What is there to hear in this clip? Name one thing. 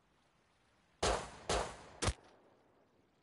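A pistol fires three quick shots.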